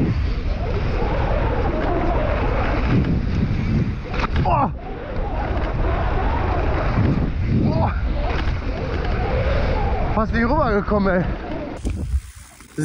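Bicycle tyres crunch over a gravel dirt track.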